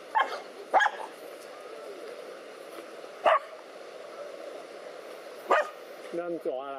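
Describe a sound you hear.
Dogs bark sharply in short bursts.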